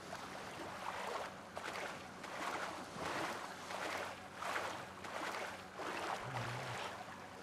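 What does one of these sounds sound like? Water splashes rhythmically with swimming strokes.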